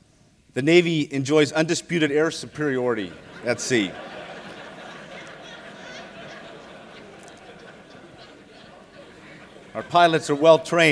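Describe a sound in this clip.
A middle-aged man speaks calmly into a microphone in a large hall.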